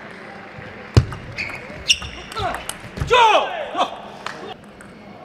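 A table tennis ball clicks sharply against paddles and the table in a quick rally.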